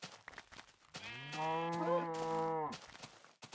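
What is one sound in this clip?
A sheep bleats loudly.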